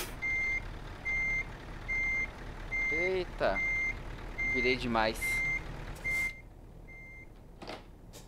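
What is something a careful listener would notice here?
A reversing alarm beeps steadily.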